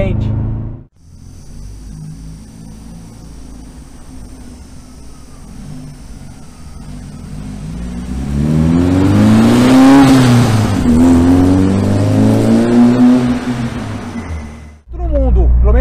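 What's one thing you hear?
A van engine roars past up close and fades away.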